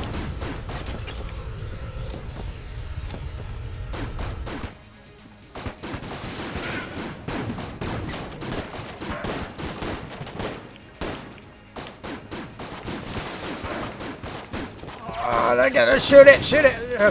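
Guns fire in quick bursts of sharp shots.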